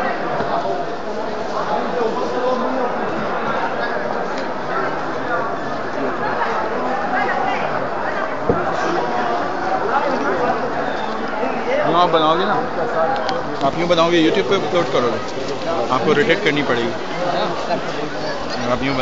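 A large crowd of men and women talks and murmurs all around, close by.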